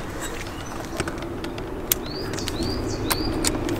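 A metal tool clicks and rattles against a hose clamp.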